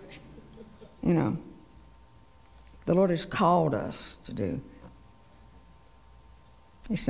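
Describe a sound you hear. An elderly woman speaks slowly and deliberately into a microphone.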